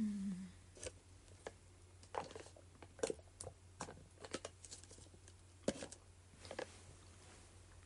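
A young woman sips loudly through a straw.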